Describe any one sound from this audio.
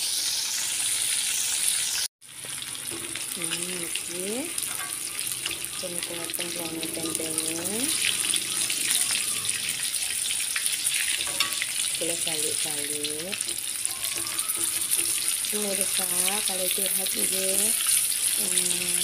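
Oil sizzles and crackles steadily as food fries in a pan.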